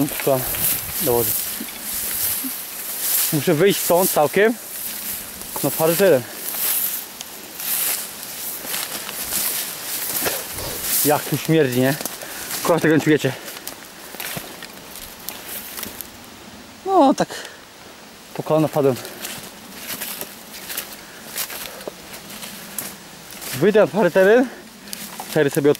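Footsteps rustle and swish through tall grass and undergrowth.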